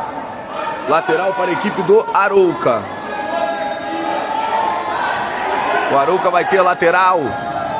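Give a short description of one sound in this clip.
A man shouts loudly nearby in an echoing hall.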